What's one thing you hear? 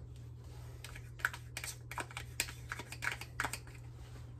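Crumbled cheese patters softly into a pot.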